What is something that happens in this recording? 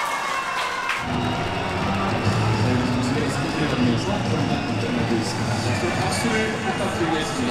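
A crowd of young women cheers excitedly nearby.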